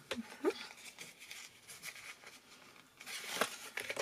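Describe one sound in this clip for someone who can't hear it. Cardstock crinkles as it is folded by hand.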